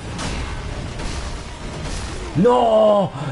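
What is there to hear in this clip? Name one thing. Swords clash and thud in a fight.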